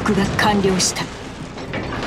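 Heavy shells crash into the water with loud splashes.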